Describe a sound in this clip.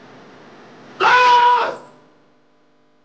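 A man shouts out sharply.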